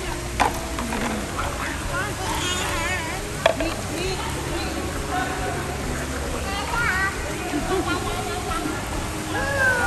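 Young children babble and chatter in an echoing room.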